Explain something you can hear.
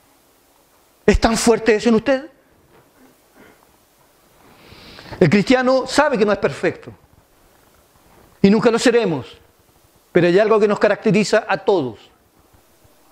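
A middle-aged man speaks with emphasis into a microphone, in short bursts with pauses.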